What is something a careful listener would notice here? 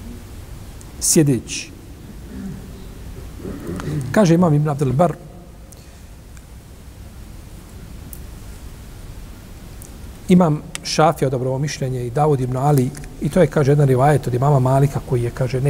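An older man speaks calmly and slowly into a close microphone, with long pauses.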